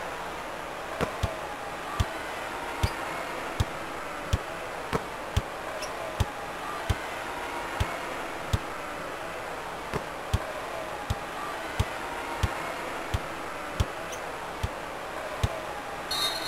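A basketball bounces steadily on a wooden court.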